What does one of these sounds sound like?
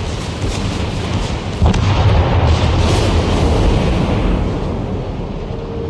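Heavy naval guns fire with deep booming blasts.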